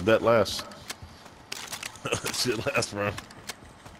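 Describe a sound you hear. A rifle's magazine clicks and clacks into place.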